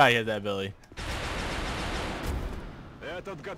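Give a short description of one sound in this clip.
A grenade explodes with a loud, roaring blast.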